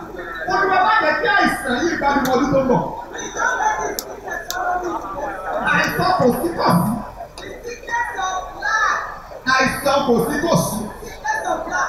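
A woman sings through a microphone and loudspeakers.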